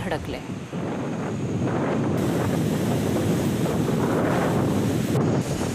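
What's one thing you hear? Waves surge and crash onto the shore.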